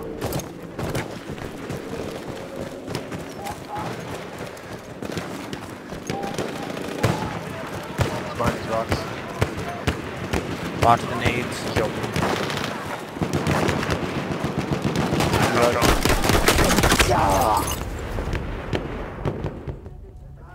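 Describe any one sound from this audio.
Gunfire cracks and rattles across an open battlefield.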